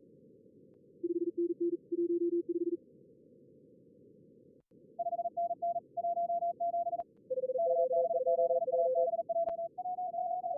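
Morse code beeps sound in quick bursts, at a few different pitches.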